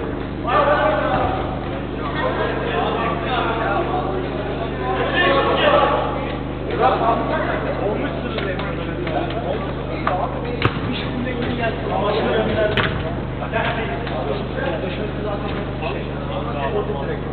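Men shout and call out to each other in a large echoing hall.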